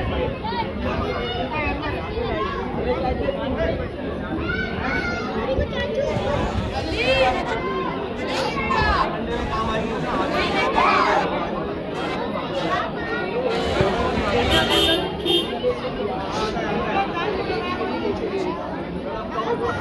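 A large crowd of men shouts and talks excitedly close by.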